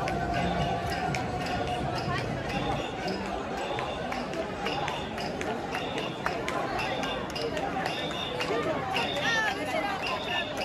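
Men chant rhythmically in unison.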